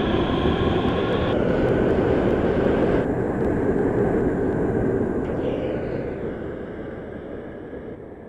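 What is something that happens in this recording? A subway train rumbles past on the rails and fades into the distance.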